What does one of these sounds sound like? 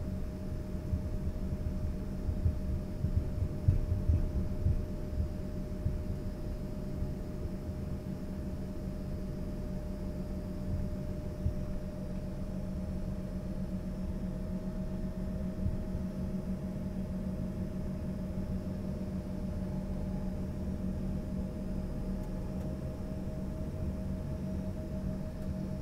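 A jet engine hums steadily from inside an aircraft cabin.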